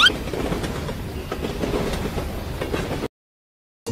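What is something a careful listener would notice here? A toy steam engine rumbles along a railway track.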